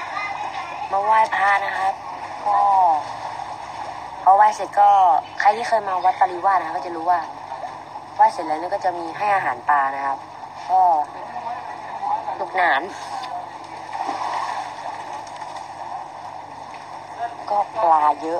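A teenage boy talks with animation close to a phone microphone.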